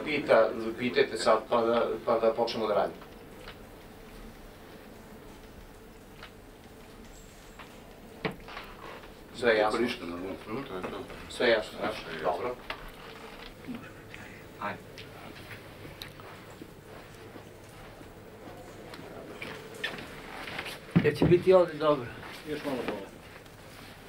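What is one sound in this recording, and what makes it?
A man speaks calmly nearby, asking questions.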